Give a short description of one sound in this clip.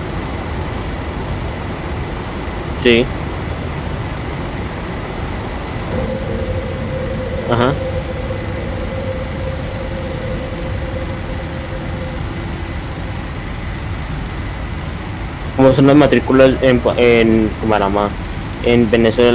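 Jet engines hum steadily in a cockpit.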